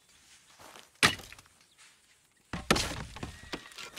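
An axe chops into wood with sharp, heavy thuds.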